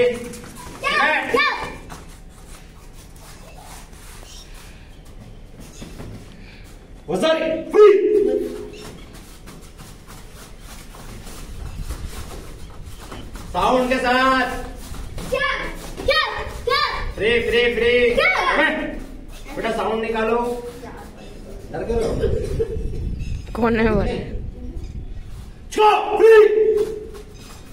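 A man speaks loudly and firmly in an echoing room, giving commands.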